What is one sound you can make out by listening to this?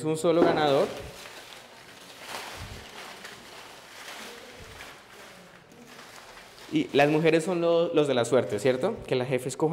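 Paper slips rustle as they are stirred by hand.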